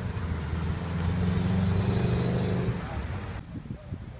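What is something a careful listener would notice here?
A car accelerates past.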